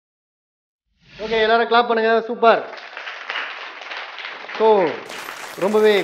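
A group of young women clap their hands.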